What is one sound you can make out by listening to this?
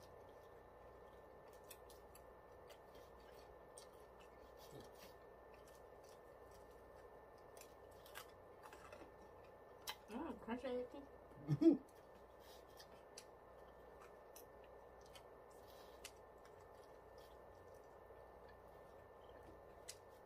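Food is chewed with soft smacking and crunching close by.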